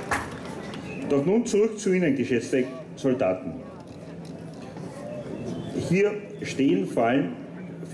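A man speaks firmly through a microphone and loudspeakers.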